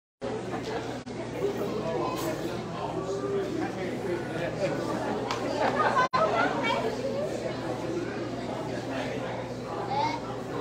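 Many people chatter in a large echoing hall.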